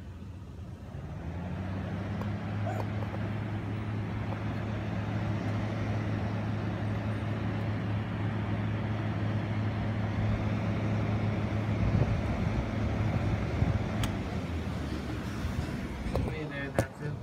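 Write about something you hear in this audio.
An exhaust fan hums steadily and close by.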